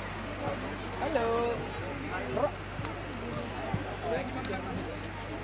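Women and girls chatter and call out nearby.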